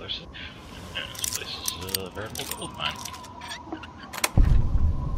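A metal pick scrapes and clicks inside a lock.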